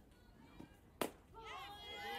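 A softball smacks into a catcher's mitt with a sharp pop.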